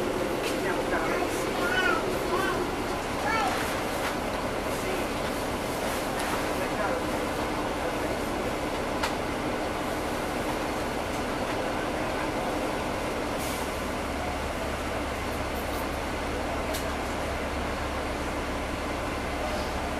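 A bus engine hums steadily while the bus rolls along.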